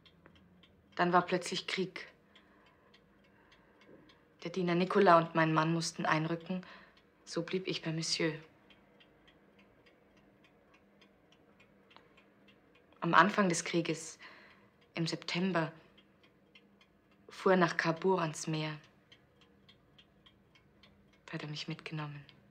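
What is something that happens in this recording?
A young woman speaks calmly nearby, in short phrases with pauses.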